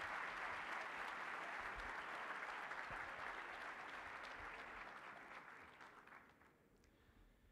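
An audience applauds in a large hall and the applause slowly dies away.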